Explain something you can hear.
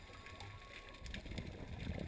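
Air bubbles from a diver's breathing gurgle and rumble underwater.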